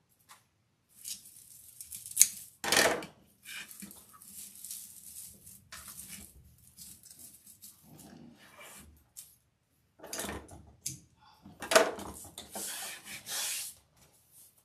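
Stiff mesh ribbon rustles and crinkles as hands work it.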